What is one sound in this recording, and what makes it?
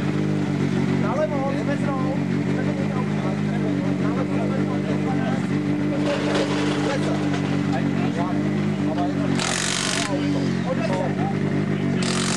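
A man talks with another man at close range.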